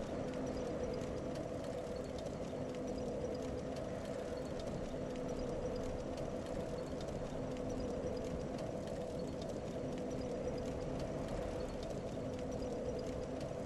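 A burning blade crackles softly.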